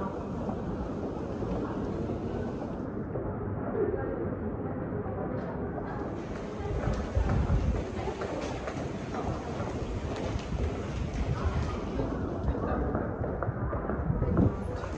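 A crowd murmurs in an echoing underground passage.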